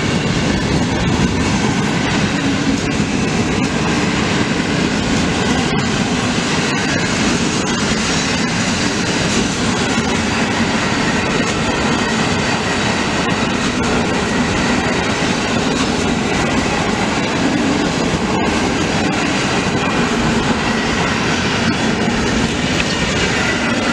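A passenger train rumbles loudly past close by.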